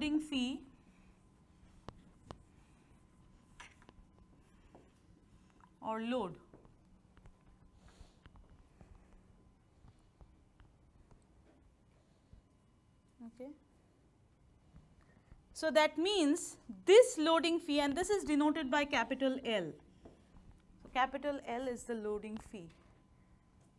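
A young woman speaks calmly, pausing often.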